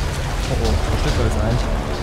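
Water splashes as a woman wades through it.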